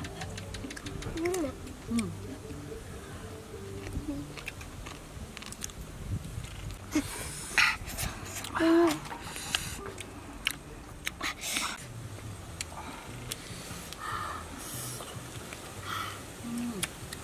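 A woman chews food noisily up close.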